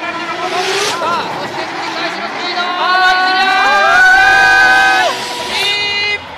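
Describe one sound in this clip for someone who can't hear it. Tyres squeal loudly as a car slides sideways.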